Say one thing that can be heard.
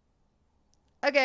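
A young woman speaks close into a microphone.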